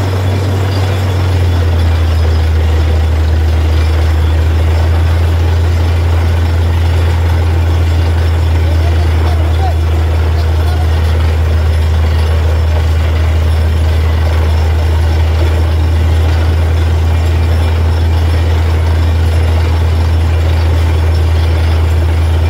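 Muddy water gurgles out of a borehole.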